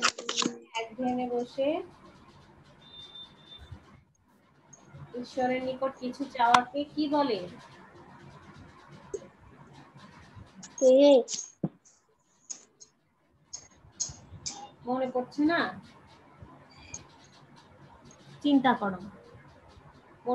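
A girl speaks in short, halting phrases over an online call.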